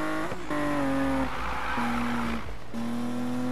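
Tyres screech during a slide.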